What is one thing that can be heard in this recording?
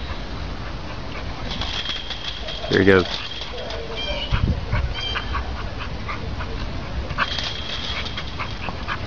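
A wire fence rattles as animals bump against it.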